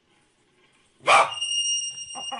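A small dog gives a sharp bark.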